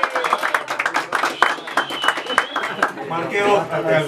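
People clap their hands rapidly.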